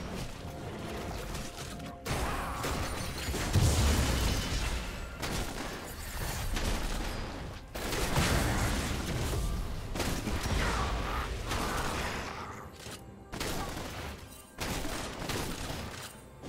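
Magic spells whoosh and crackle as game characters fight.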